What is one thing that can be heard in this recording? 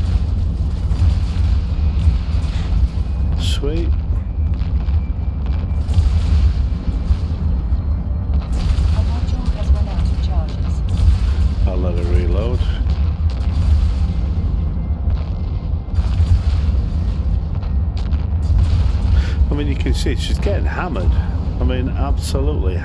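Missile volleys and explosions boom in a game's space battle.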